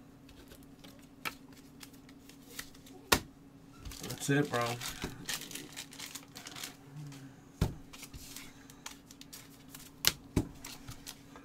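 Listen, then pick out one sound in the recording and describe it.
Cards and packs tap and rustle on a table.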